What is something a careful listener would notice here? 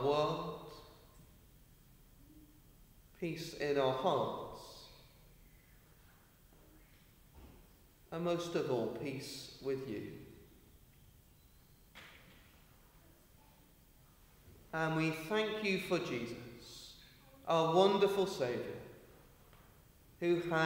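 A man reads aloud calmly through a microphone, with pauses, in a large echoing hall.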